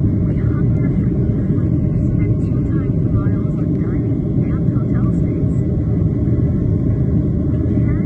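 Jet engines roar loudly and steadily inside an airplane cabin.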